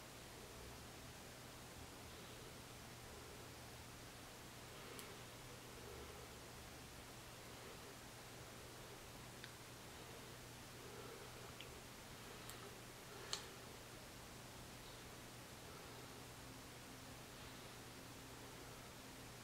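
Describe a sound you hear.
A brush taps and scrapes against a makeup compact.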